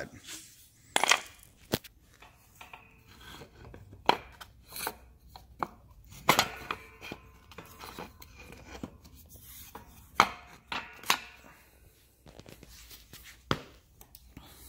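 Wooden blocks knock and clatter on a hard floor.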